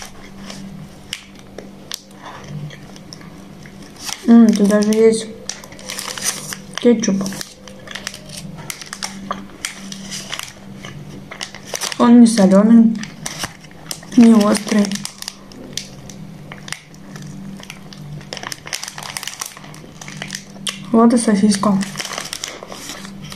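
Foil wrapping crinkles and rustles.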